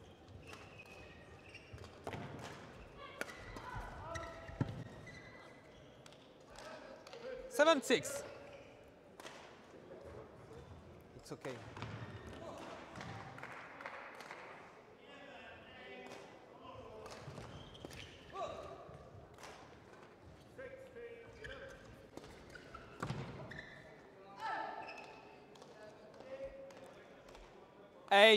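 Badminton rackets strike a shuttlecock in quick rallies, echoing in a large hall.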